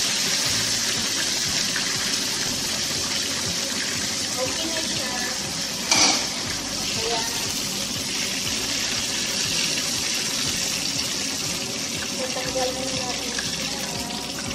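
Oil sizzles and crackles steadily in a hot pan.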